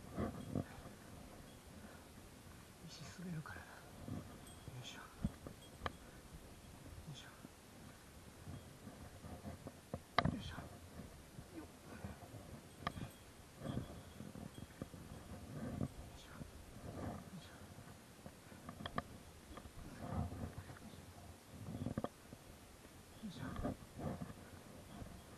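A hand brushes and pats against rough stone.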